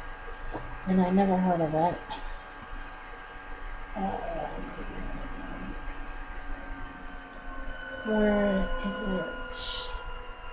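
A young woman speaks briefly and calmly, close to the microphone.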